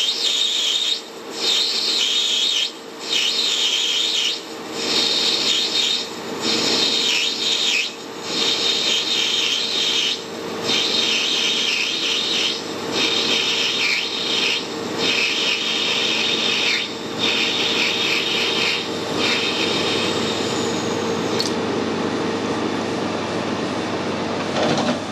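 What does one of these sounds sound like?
A cutting tool scrapes and hisses against brass in short bursts.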